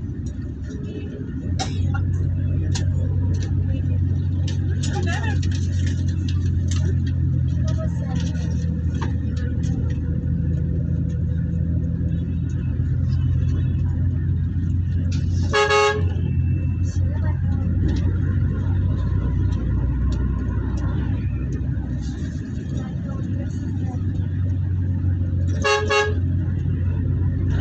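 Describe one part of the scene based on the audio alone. A vehicle engine hums steadily as it drives along a road.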